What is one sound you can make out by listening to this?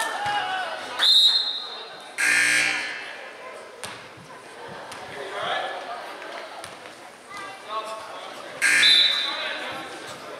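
A referee's whistle blows sharply a few times.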